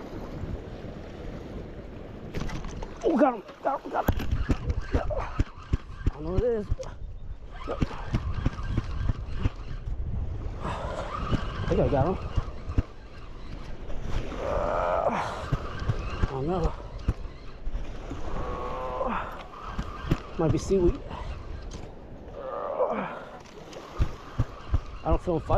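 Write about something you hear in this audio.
A spinning reel is cranked, winding in fishing line.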